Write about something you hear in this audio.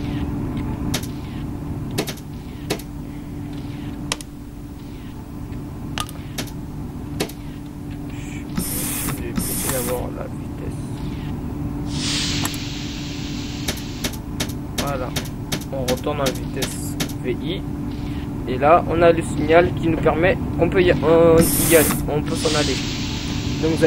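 Train wheels click over rail joints.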